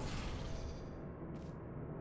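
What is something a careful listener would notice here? A portal gun fires with a short electric zap.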